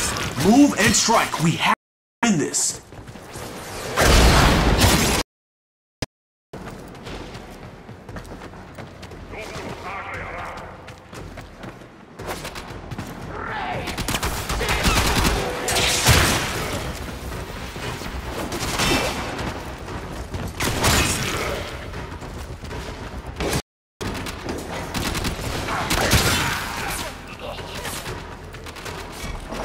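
A gun fires repeatedly with sharp blasts.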